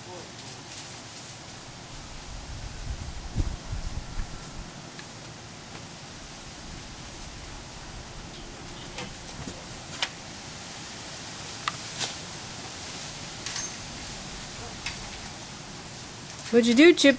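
A lawn sprinkler hisses as it sprays water.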